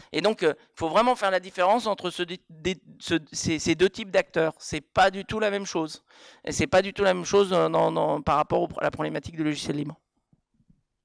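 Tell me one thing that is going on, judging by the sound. A man speaks with animation into a microphone, heard through a loudspeaker in a large echoing room.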